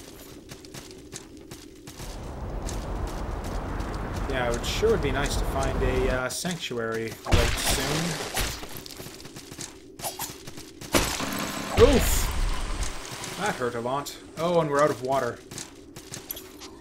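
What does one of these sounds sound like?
Swords clash and slash in a game fight.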